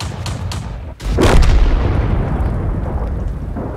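An explosion booms loudly and rumbles away.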